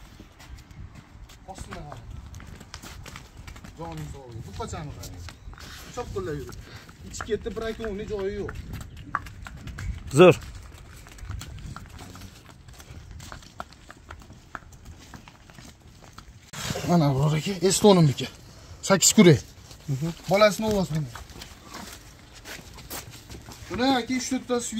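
Cattle hooves clop on pavement.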